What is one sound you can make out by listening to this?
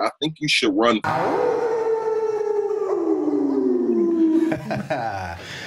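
Two men laugh loudly.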